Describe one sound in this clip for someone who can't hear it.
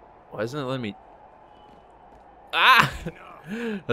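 A body slams onto a hard floor.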